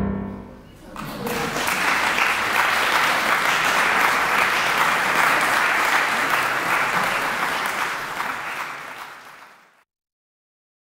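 An audience applauds loudly in a large hall, then the clapping fades away.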